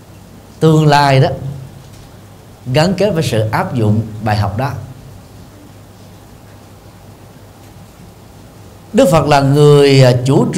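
A middle-aged man speaks animatedly into a microphone, in bursts with pauses.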